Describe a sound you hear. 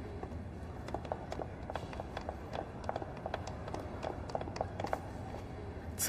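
High heels click on a hard floor.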